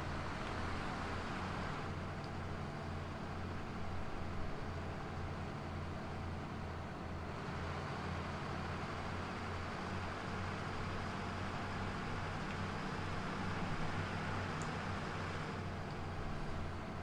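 A city bus engine drones as the bus drives along.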